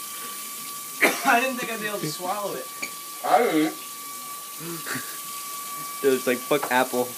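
Young men talk loudly nearby.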